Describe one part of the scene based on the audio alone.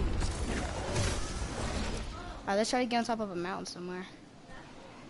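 Wind rushes past during a glide through the air.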